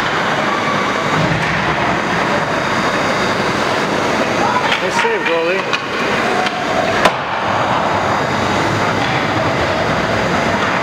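Hockey skates scrape and carve on ice in a large echoing arena.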